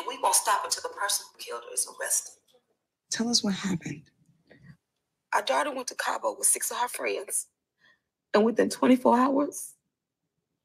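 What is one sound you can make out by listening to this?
A young woman speaks in a low, tense voice.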